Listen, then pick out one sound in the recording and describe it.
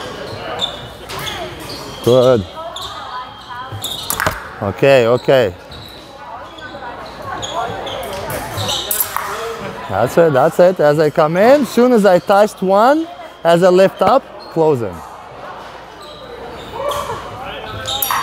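Fencing blades clash and click in an echoing hall.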